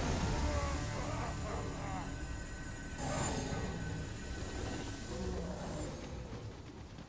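A shimmering magical chime rings and slowly fades.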